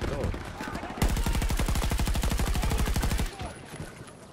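A rifle fires in rapid automatic bursts, close by.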